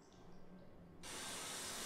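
Water runs from a tap and splashes.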